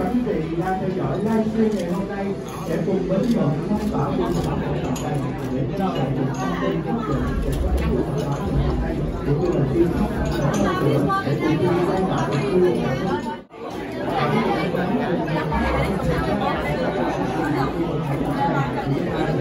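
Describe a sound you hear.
A crowd of men and women chatter and talk over one another nearby.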